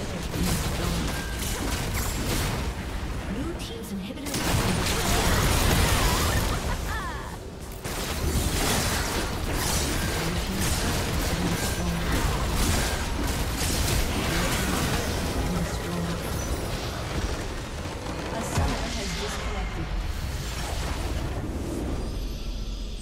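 Video game spell effects crackle, whoosh and explode rapidly.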